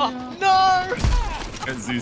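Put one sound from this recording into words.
A gun fires a short burst of shots.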